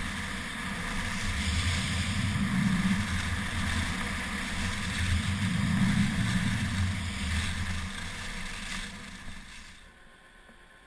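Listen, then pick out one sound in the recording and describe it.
Wind rushes hard past a fast-moving skier.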